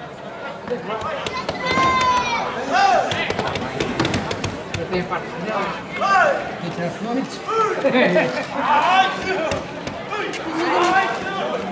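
A crowd of onlookers shouts and whistles outdoors, growing louder and more excited.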